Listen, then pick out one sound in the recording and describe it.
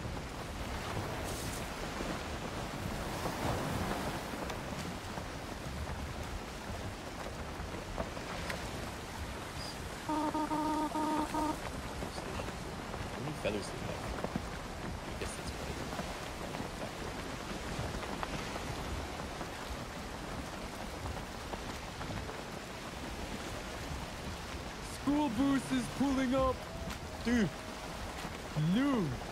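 Waves splash and wash against a boat's hull.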